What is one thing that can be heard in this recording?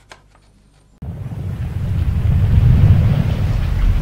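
Flames roar with a deep, steady rumble.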